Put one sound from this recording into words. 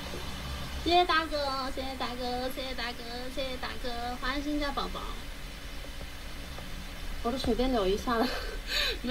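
A young woman speaks close by in a lilting, sing-song voice.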